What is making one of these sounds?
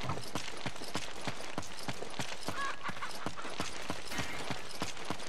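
Footsteps run quickly over dirt.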